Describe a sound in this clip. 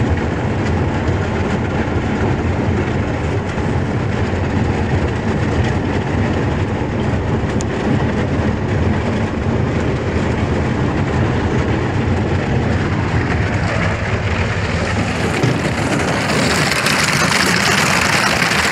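Thin ice crackles and scrapes against a boat's hull.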